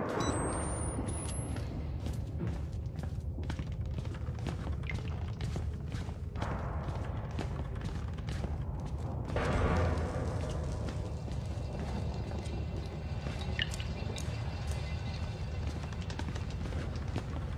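Footsteps tread slowly over a creaky wooden floor.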